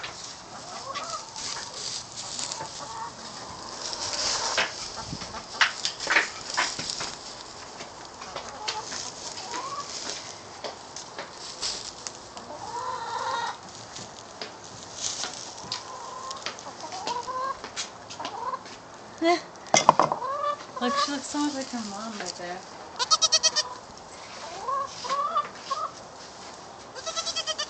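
Goats nibble and rustle close by in dry hay.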